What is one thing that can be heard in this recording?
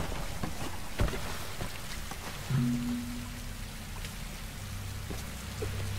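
A waterfall splashes steadily nearby.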